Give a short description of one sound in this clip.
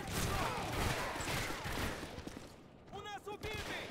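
A rifle rattles with metallic clicks as it is handled.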